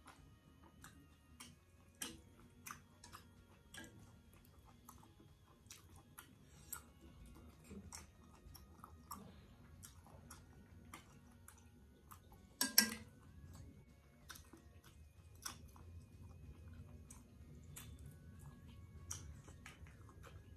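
A woman slurps and chews food close to a microphone.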